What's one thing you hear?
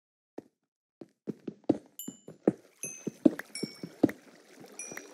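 Stone blocks crack and break under rapid pickaxe strikes.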